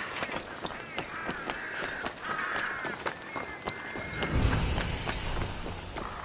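Footsteps run across clay roof tiles.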